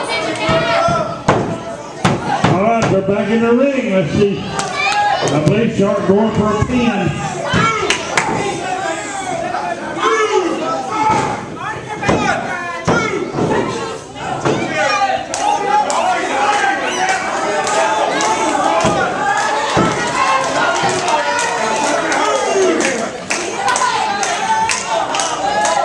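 A crowd of people shouts and cheers in an echoing hall.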